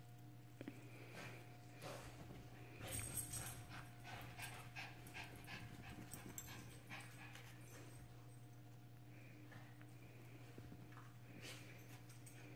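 Two small dogs scuffle and play.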